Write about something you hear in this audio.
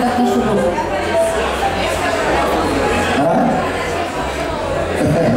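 Band music plays loudly, heard live.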